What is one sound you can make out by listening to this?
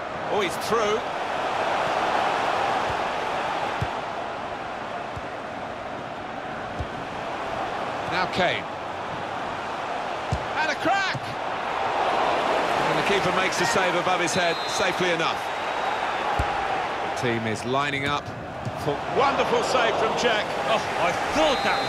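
A stadium crowd roars and cheers steadily.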